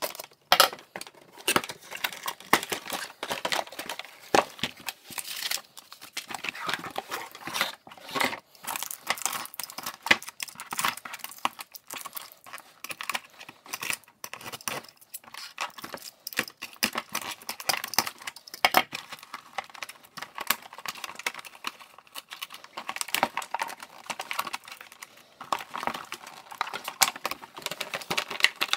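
Cardboard packaging rustles and scrapes under hands.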